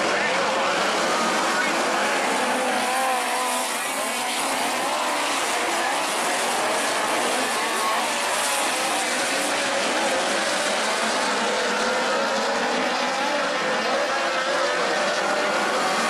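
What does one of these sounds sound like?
A crowd murmurs nearby outdoors.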